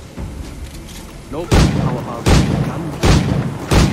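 A pistol shot rings out.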